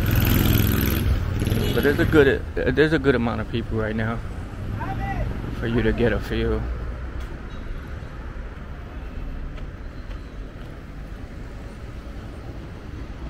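Traffic hums steadily on a nearby street.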